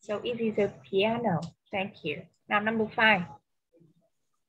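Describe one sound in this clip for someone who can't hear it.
A young woman speaks clearly through an online call.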